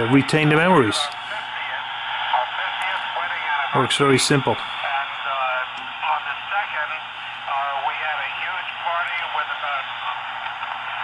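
A man's voice comes through a radio loudspeaker, warbling and distorted.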